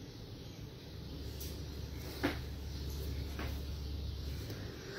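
A phone knocks and rustles as it is moved.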